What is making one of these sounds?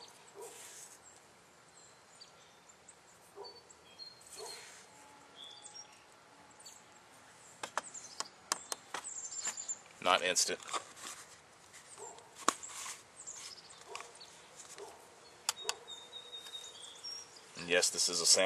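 Small objects click and tap against a container.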